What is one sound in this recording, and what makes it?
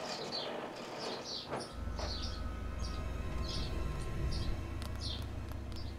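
A heavy metal vault door grinds and creaks open.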